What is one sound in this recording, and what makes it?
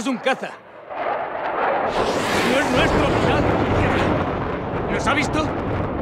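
A jet plane roars as it flies overhead.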